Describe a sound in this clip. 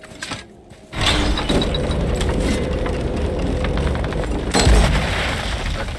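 A heavy wooden gate grinds and rumbles as it is lifted open.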